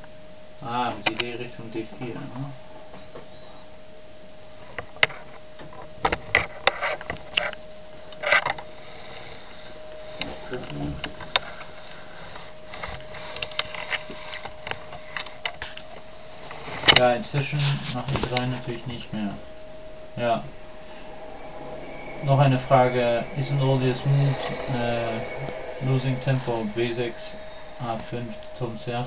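A man talks in a low voice close by.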